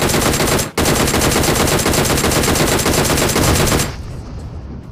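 Rapid gunfire rattles loudly in quick bursts.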